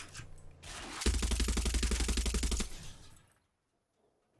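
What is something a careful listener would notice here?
A mounted machine gun fires a long rapid burst.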